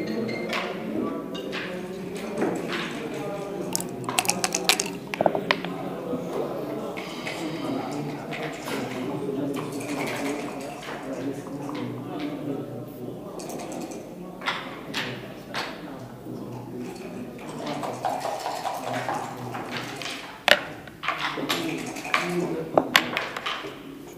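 Checkers click and slide on a wooden game board.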